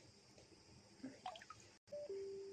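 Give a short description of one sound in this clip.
Water splashes and sloshes in a bucket.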